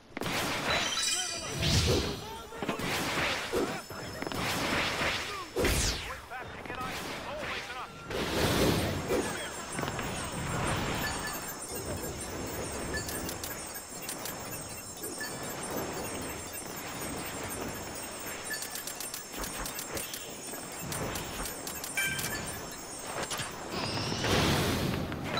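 Bursts of magical energy whoosh and crackle loudly.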